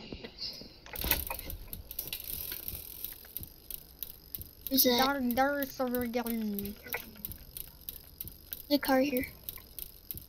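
A bicycle rolls steadily along a road.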